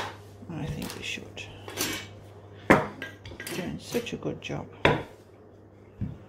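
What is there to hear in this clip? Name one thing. A wooden rolling pin rolls and knocks against a board as dough is rolled out.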